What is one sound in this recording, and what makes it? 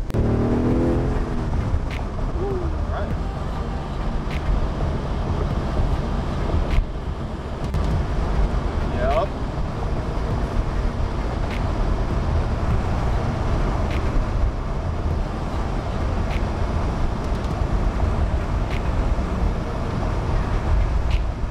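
Wind rushes against the car.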